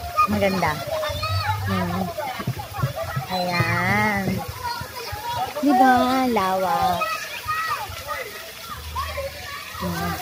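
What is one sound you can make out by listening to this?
Children shout and shriek playfully nearby.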